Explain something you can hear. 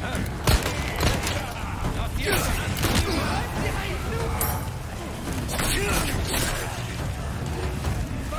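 Fire crackles and roars.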